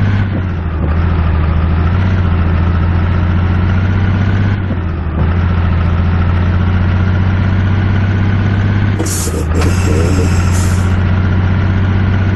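A truck engine rumbles steadily as it drives along.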